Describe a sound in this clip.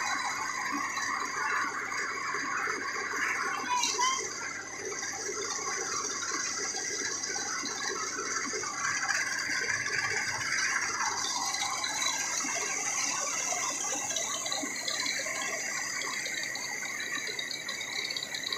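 Grain pours and hisses out of a chute.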